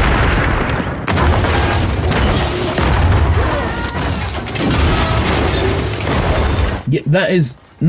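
A car crashes and tumbles over rocks.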